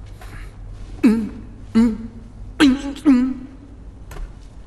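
A man shouts loudly nearby, with strained cries.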